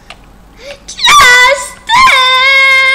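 A young child squeals loudly and excitedly close to a microphone.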